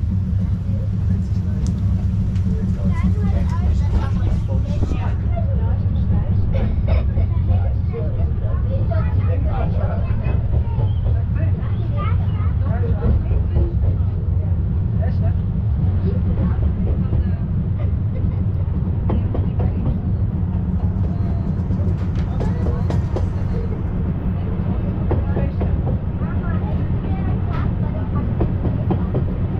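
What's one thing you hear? A rack railway carriage rumbles and clatters steadily along its track.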